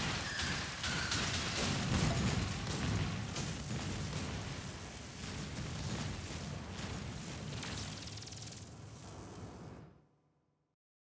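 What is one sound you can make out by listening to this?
Explosions boom and crackle in a video game.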